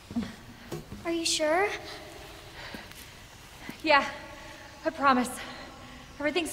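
A young woman asks a question in a quiet, uneasy voice.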